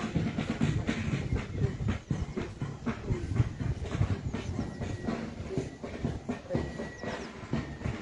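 Footsteps shuffle on a paved path.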